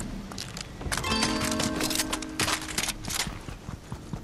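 A bright chiming jingle rings out.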